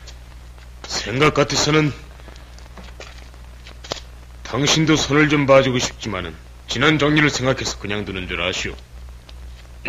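A man speaks calmly and firmly nearby.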